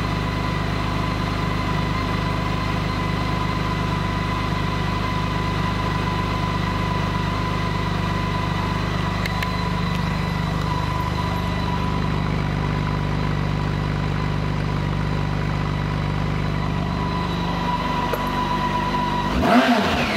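A motorcycle engine idles steadily and low nearby.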